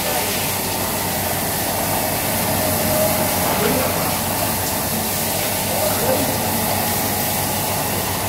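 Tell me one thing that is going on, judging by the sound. Rotating brushes scrub a wet carpet.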